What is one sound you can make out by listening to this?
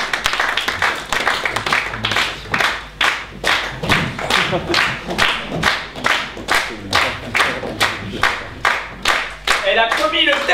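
An audience claps in steady unison.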